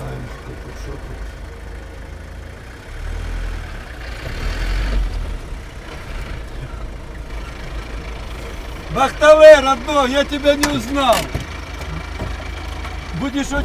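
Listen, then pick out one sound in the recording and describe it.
A vehicle engine rumbles low and steadily from inside the cab.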